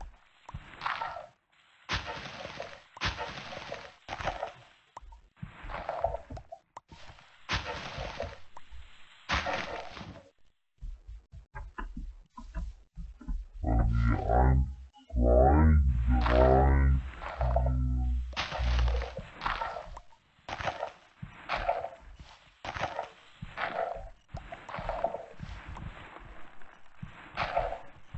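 A shovel digs into dirt in quick, repeated crunching scrapes.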